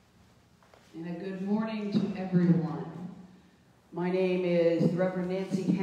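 A woman sings loudly nearby in an echoing room.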